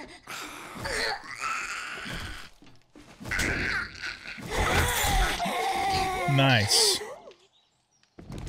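A melee weapon strikes a zombie with heavy thuds.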